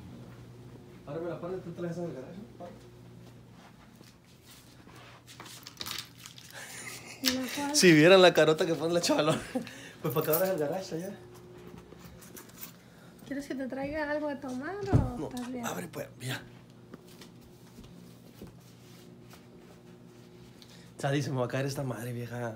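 A young man talks and laughs close by, with animation.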